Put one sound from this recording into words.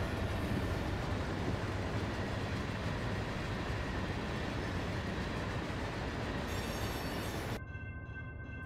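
A freight train rumbles and clatters along the tracks close by.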